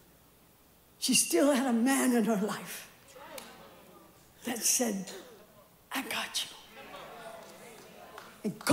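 A woman preaches with passion through a microphone in a large echoing hall.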